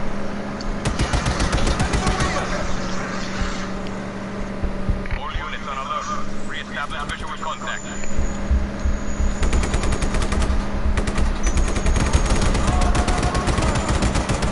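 A mounted gun fires bursts of shots.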